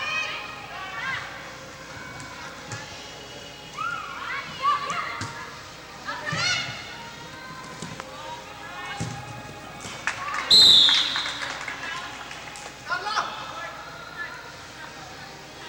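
Young girls shout and call out across a large echoing indoor hall.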